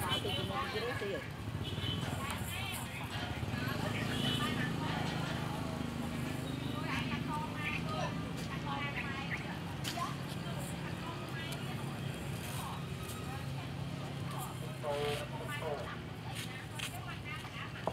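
A crowd of men and women chatters outdoors nearby.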